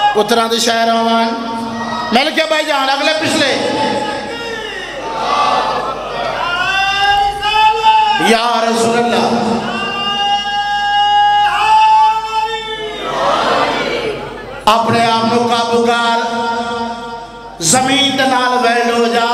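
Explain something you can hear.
A young man sings loudly into a microphone, heard through loudspeakers.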